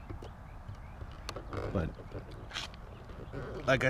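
A plastic car side mirror clicks and creaks as a hand pushes it.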